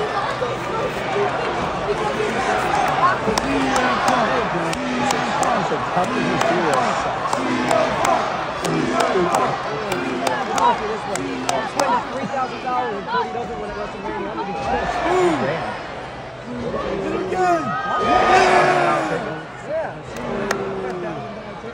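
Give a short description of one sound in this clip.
A large crowd cheers and chants in a big echoing arena.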